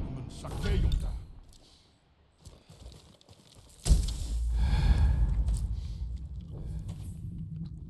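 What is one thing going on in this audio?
Footsteps thud softly across a wooden floor.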